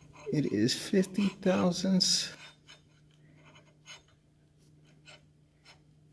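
A gloved hand scrapes and clicks against a metal plate.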